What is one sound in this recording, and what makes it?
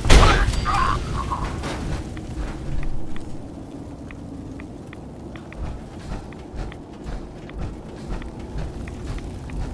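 Fire crackles and roars close by.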